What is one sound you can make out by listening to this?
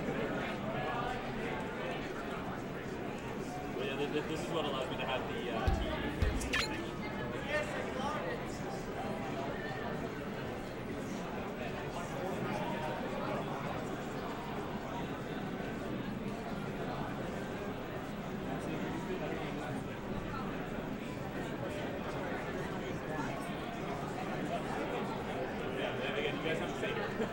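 A crowd chatters in a large echoing room.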